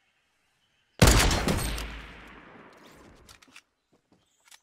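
A rifle shot cracks loudly and echoes away.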